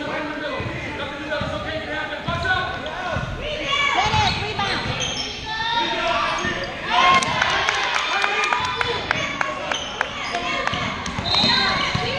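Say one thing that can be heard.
Several people talk and call out nearby in a large echoing hall.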